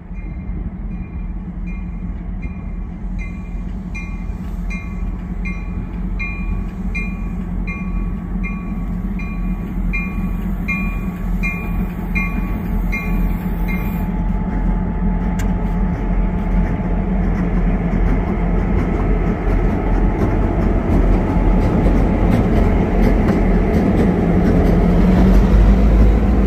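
Diesel locomotives rumble as a freight train approaches and grows louder.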